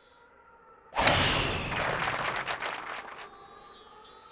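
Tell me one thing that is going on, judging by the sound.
A golf club strikes a ball with a sharp whoosh.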